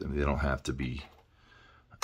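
Small metal parts clink on a wooden table.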